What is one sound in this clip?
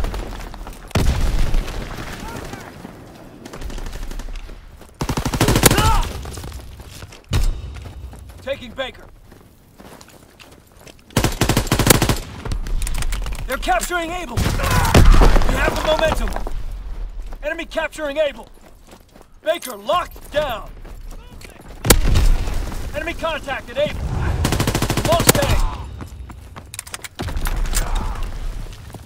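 Rapid gunfire bursts ring out in loud volleys.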